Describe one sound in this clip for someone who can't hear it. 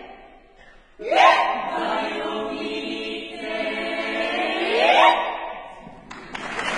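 A women's choir sings together in close harmony in a large hall.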